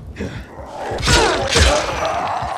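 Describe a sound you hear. Heavy blows thud against a body.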